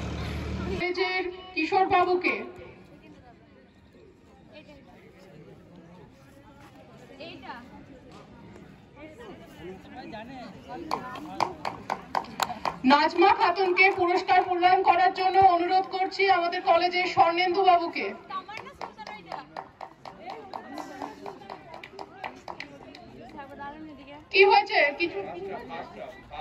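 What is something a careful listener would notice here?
A woman speaks briefly nearby outdoors.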